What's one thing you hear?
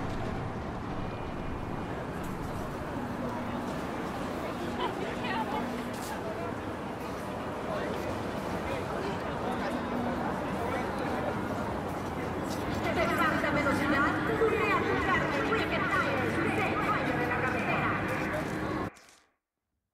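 A crowd murmurs on a busy city street.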